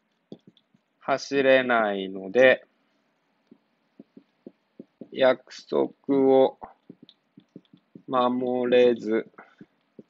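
A young man speaks calmly and clearly, close by.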